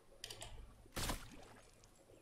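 A sniper rifle fires a single loud shot in a video game.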